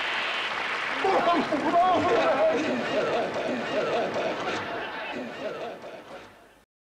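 A man laughs loudly and heartily nearby.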